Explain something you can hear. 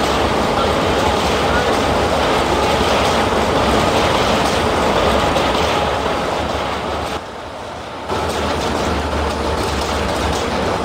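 A subway train rumbles and clatters along the tracks.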